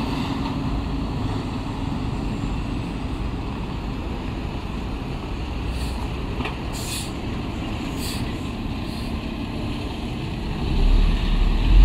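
A second heavy truck engine rumbles, farther off.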